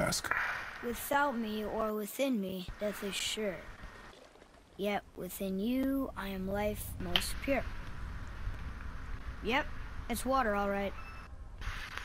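A young boy speaks calmly, close by.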